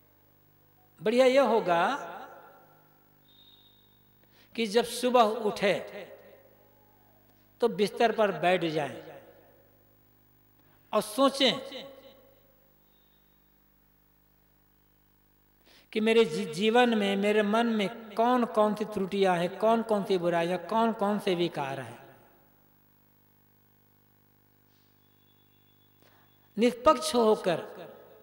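An elderly man chants in a slow, drawn-out voice.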